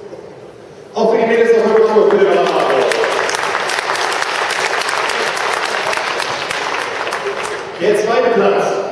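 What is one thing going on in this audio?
A man speaks into a microphone over a loudspeaker in a large echoing hall.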